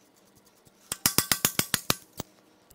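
A ratchet wrench clicks rapidly against metal.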